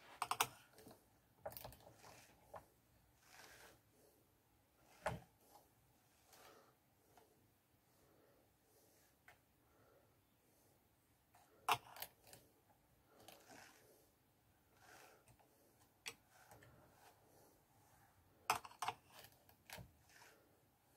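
A wooden drum carder clicks and rattles as its handle is turned.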